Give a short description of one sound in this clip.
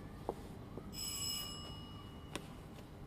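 A doorbell chimes.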